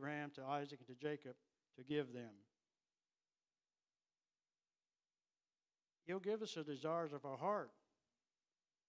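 An elderly man reads aloud slowly and calmly into a microphone, with pauses.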